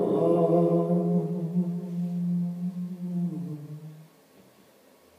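A young man sings a long held note into a microphone, close up.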